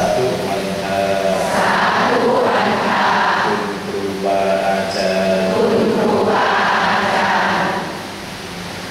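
A Buddhist monk chants through a microphone.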